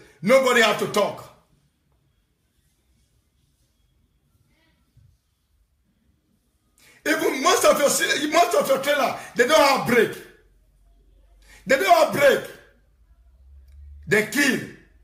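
A young man sings with animation into a close microphone, in short bursts.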